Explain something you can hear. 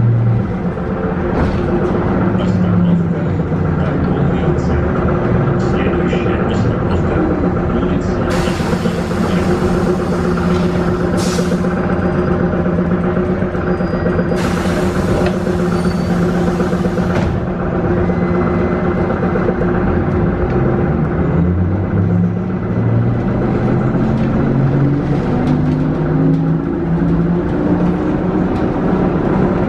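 A bus engine hums steadily, heard from inside the bus.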